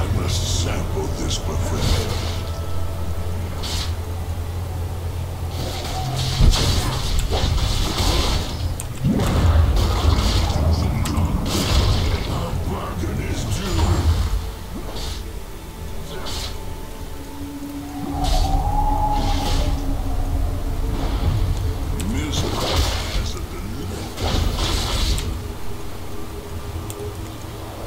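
Magic blasts whoosh and crackle in quick bursts during a fight.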